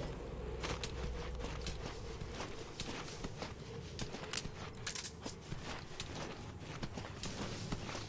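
Clothes and gear rustle as a man crawls over gravel.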